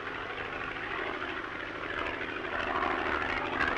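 An aircraft engine drones overhead.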